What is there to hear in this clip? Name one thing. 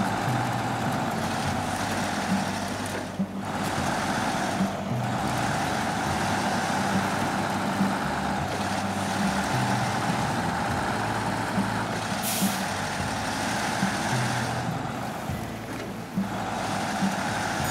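Tyres crunch and grind over snow.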